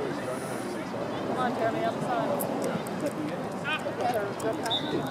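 Many voices of spectators and players shout and call out across an open field outdoors.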